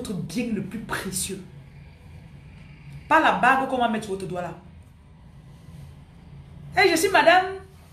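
A woman speaks with animation close to a microphone, in bursts with pauses.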